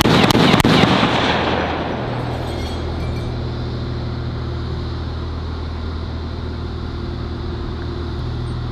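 A heavy vehicle's diesel engine idles with a steady low rumble.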